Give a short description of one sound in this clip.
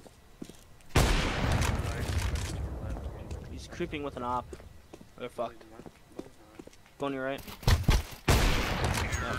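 A sniper rifle fires with a loud sharp crack.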